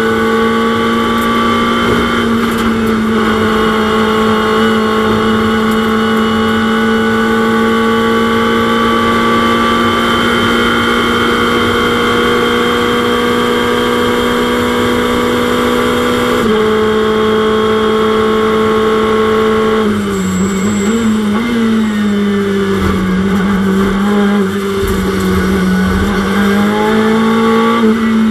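A race car engine roars at high speed, dropping in pitch as it shifts gears and slows.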